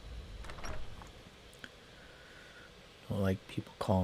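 A heavy wooden door creaks open.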